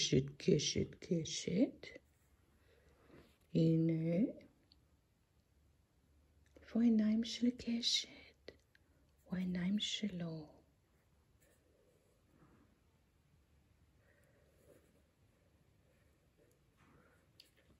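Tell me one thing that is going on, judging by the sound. A brush swishes softly across paper.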